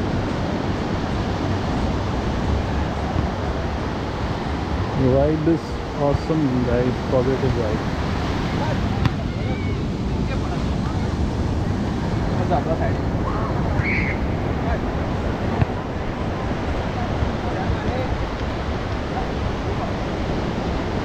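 Waves break and wash up on the shore steadily.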